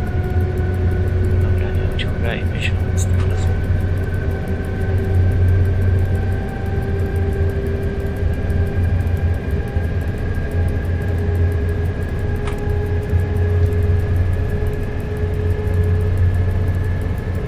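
A train engine hums and rumbles steadily.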